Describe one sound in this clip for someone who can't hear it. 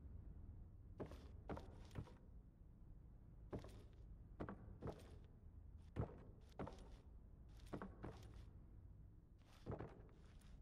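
Footsteps thud on a wooden floor indoors.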